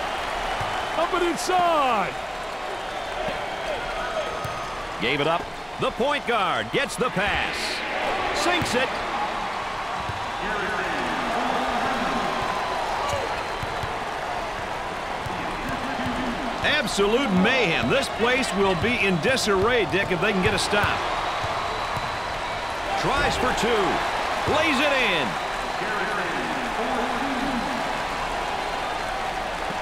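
A crowd murmurs and cheers steadily in a large echoing arena.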